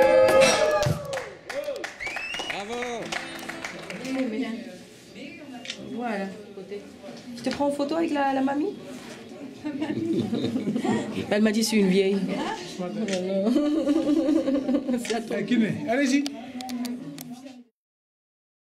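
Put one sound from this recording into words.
Young girls talk and chatter close by.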